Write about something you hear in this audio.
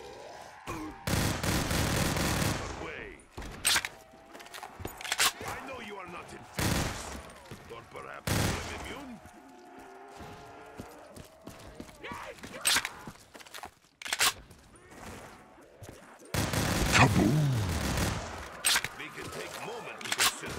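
A gun fires in short sharp bursts.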